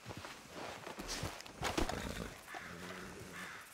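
Horse hooves thud softly on grass.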